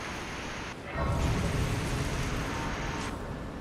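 A deep, ringing chime swells up.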